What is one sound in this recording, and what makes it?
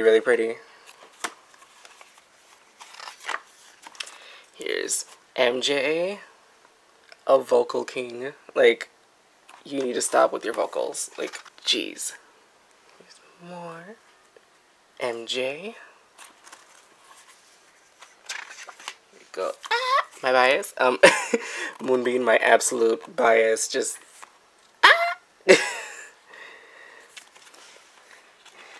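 Glossy book pages are turned by hand and rustle.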